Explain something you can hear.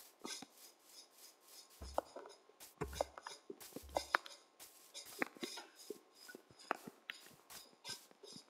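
Footsteps crunch on grass at a steady walking pace.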